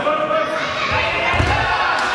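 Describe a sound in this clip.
A body thuds heavily onto a mat.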